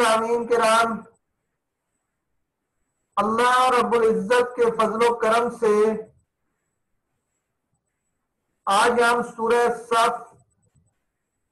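A man recites slowly in a melodic chanting voice, close to a microphone.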